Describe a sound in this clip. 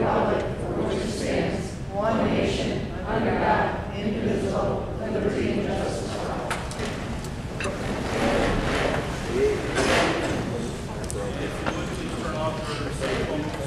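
A crowd of adults murmurs and chatters in a large echoing hall.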